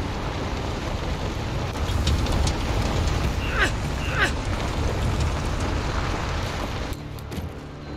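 A truck engine rumbles as the truck drives over rough ground.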